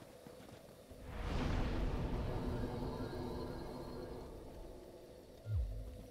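A fire whooshes and crackles nearby.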